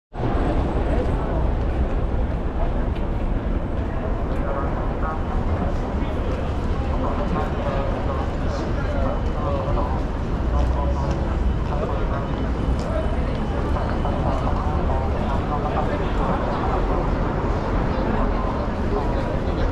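A busy crowd chatters outdoors on a city street.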